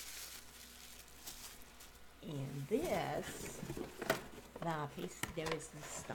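Packaging rustles and crinkles in a woman's hands.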